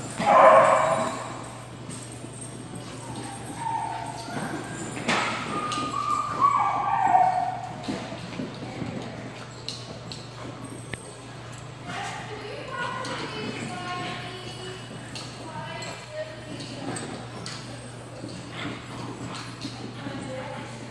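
Two dogs growl and yip playfully as they wrestle.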